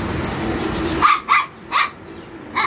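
Puppies yelp in short high bursts.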